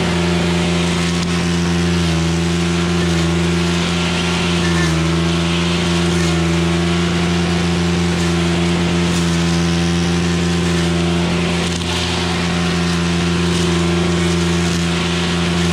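A string trimmer line whips and cuts through grass and weeds.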